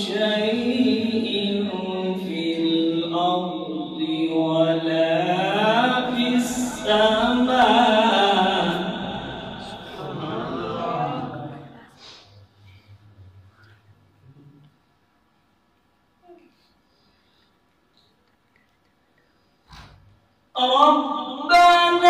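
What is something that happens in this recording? A man chants in a melodic voice through a microphone, with some echo.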